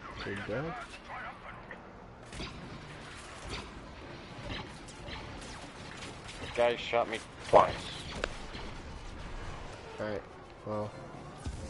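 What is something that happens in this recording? Laser blasters fire in quick bursts.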